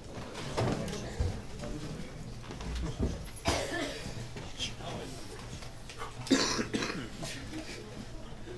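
Young men speak loudly and with animation in a room with some echo.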